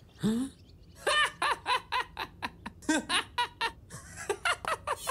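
A young boy laughs loudly in bursts.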